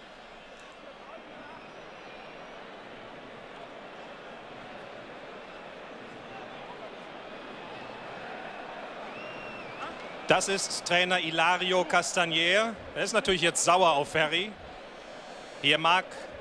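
A large stadium crowd murmurs steadily in the distance.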